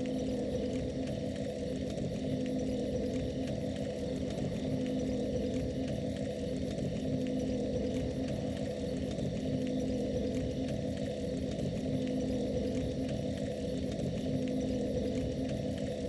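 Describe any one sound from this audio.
A bonfire crackles softly.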